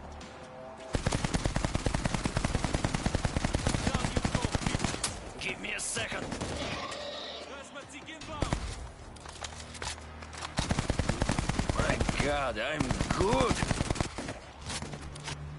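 Automatic gunfire rattles in fast, steady bursts.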